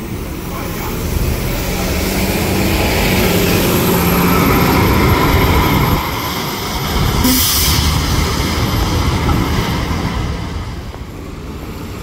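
A bus engine rumbles as the bus pulls away.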